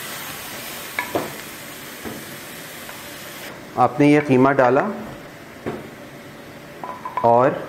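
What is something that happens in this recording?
A spatula scrapes and taps against a frying pan.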